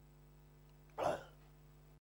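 A young man shouts out a short exclamation.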